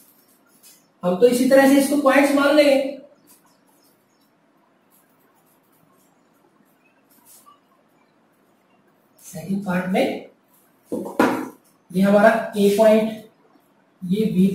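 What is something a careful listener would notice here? A man speaks calmly and clearly, as if explaining, close by.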